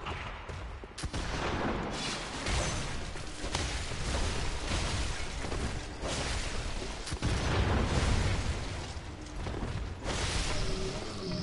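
Heavy blows and slashing clash loudly in a fight.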